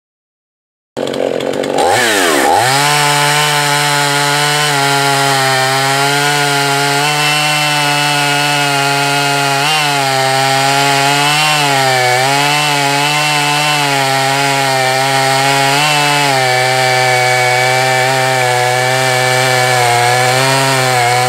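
A chainsaw revs loudly and cuts steadily through a log, outdoors.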